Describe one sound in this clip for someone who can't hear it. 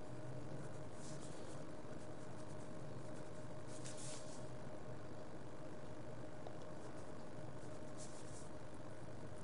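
A pen scratches on paper in short bursts.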